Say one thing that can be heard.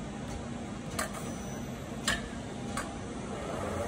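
Metal clanks sharply a few times.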